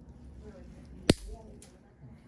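Nail nippers snap through a thick toenail with a sharp click.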